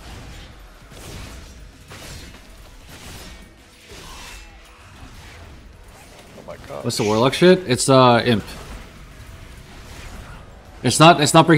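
Magic spells whoosh and crackle in a fast battle.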